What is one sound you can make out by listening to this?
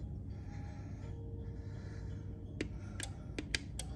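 Thermostat buttons click sharply as they are pressed.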